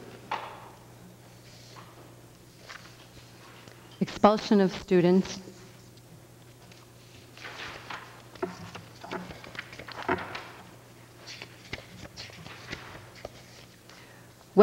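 Paper rustles as pages are turned.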